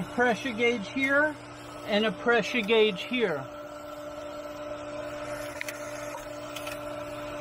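An electric pump motor hums steadily.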